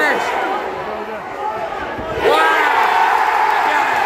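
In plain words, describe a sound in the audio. Spectators close by cheer loudly.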